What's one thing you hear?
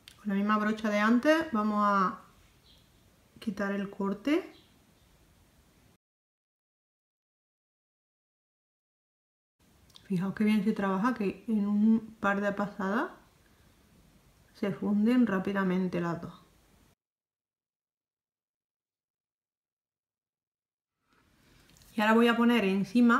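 A woman talks calmly and close up, in bursts with pauses.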